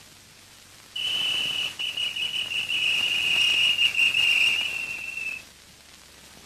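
A man blows a whistle in one long, steady shrill note.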